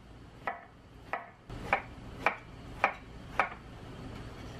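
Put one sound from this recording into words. A knife chops through firm vegetables onto a wooden board.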